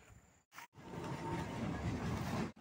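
A tarp rustles as a man handles it.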